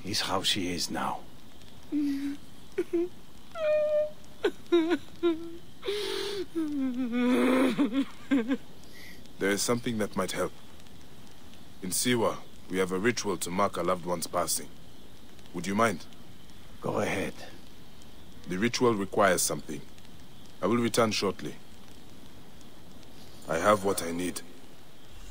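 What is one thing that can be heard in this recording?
A woman speaks calmly, heard close.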